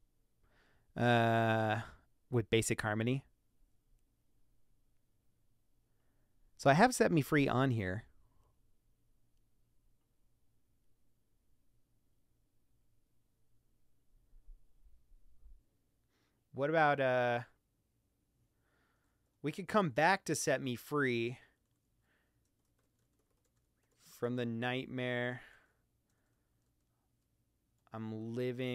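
A man sings short phrases close into a microphone, with pauses between them.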